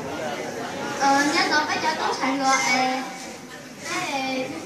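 A young girl sings into a microphone, heard through a loudspeaker.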